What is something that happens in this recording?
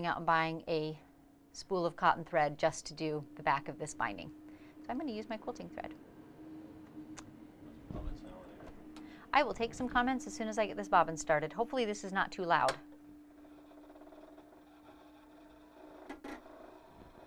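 A sewing machine hums steadily.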